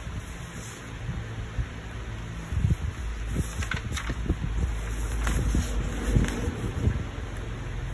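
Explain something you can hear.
Sheets of paper rustle as a hand moves them.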